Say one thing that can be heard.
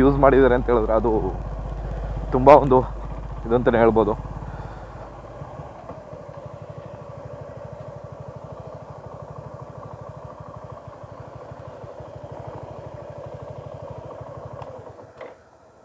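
A motorcycle engine runs close by, then idles with a steady putter and cuts off.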